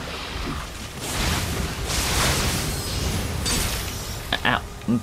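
Sword blades slash and clash in a fight.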